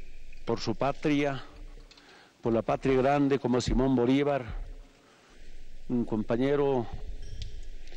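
A man speaks slowly and solemnly into a microphone, with long pauses.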